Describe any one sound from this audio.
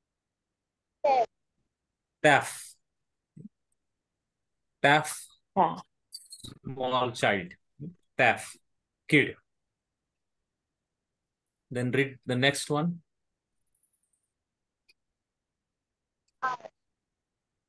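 A man speaks slowly and clearly over an online call, pausing between short words.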